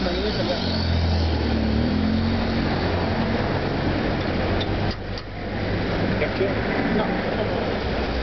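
Metal tongs clink against trays.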